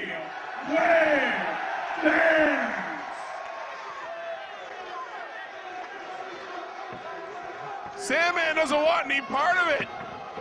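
A large crowd chants loudly in a big echoing hall.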